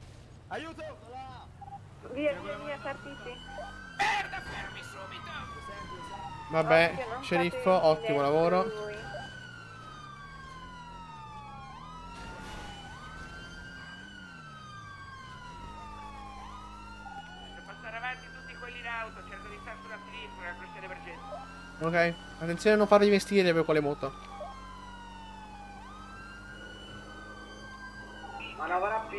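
A police siren wails in a repeating rising and falling cycle.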